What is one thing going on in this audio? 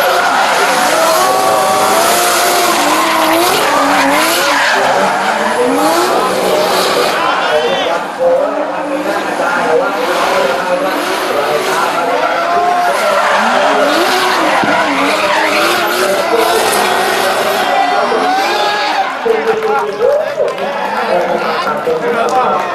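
Car engines rev hard and roar.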